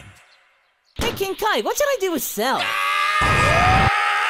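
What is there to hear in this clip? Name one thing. A man screams in panic.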